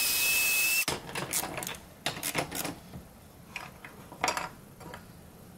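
Wooden pieces knock and clatter against each other.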